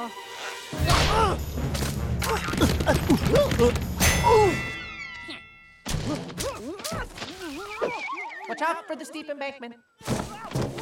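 A small character with a high, squeaky voice exclaims with excitement, close by.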